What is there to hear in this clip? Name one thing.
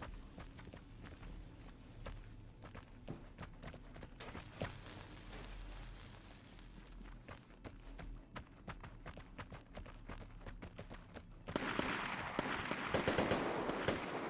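Footsteps crunch over rubble at a steady walking pace.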